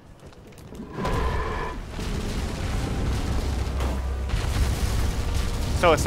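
A sword swings and strikes in a fight with a large creature.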